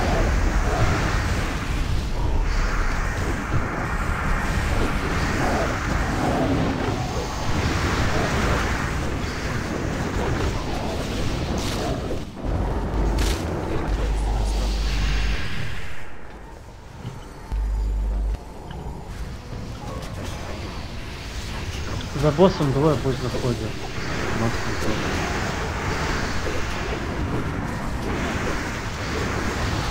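Magic spells crackle and burst in a busy battle.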